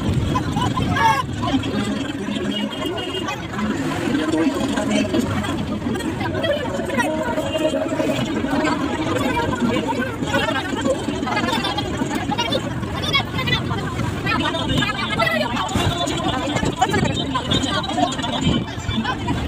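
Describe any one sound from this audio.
Tyres roll over the road with a steady hum.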